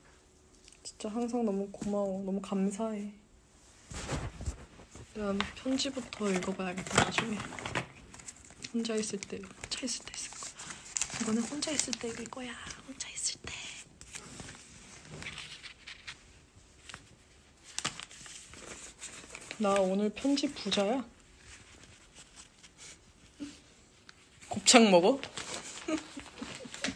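A young woman talks casually close to a phone microphone.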